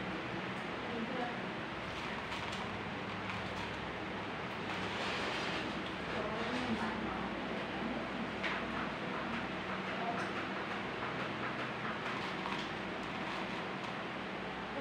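Pliers click as they bend a thin wire.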